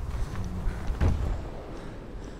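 A body lands on a metal surface with a heavy thud.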